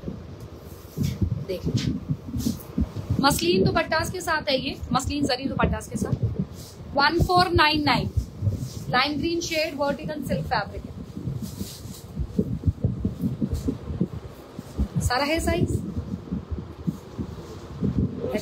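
A woman speaks with animation close to a microphone.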